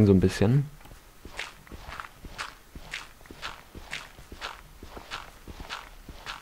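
A shovel digs into dirt with soft, regular crunches.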